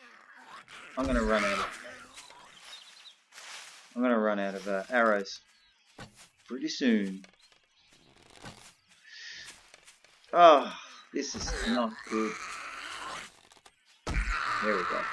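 A bow string snaps as an arrow is shot.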